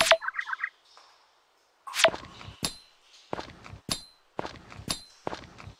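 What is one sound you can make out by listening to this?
Game sound effects of rocks being struck thud and crack again and again.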